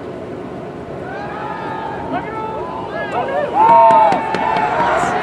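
A small crowd of young people shouts and cheers outdoors.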